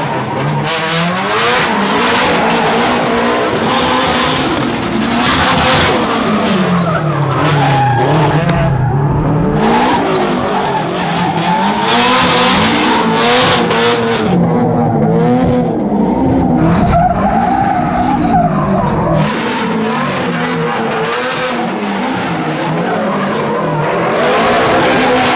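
Tyres screech on asphalt as cars drift.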